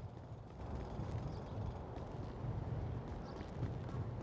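Footsteps crunch slowly on gravel.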